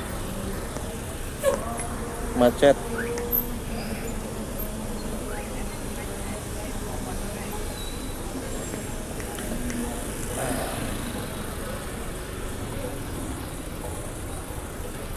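Traffic rumbles steadily on a busy street outdoors.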